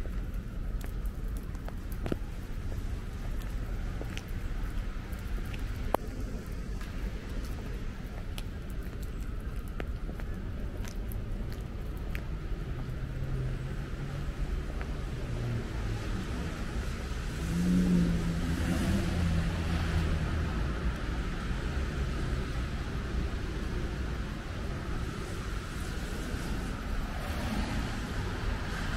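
Footsteps tread on a wet paved path.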